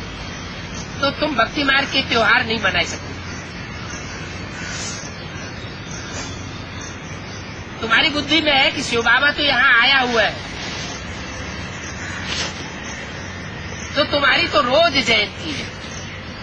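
An elderly man speaks close by in short bursts, with pauses between them.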